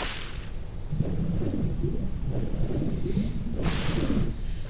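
Water swirls and gurgles underwater.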